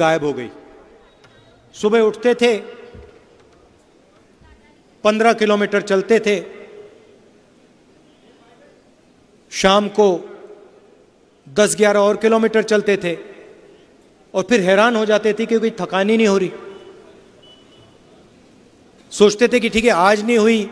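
A man speaks with animation in short bursts through a microphone and loudspeakers, echoing in a large open space.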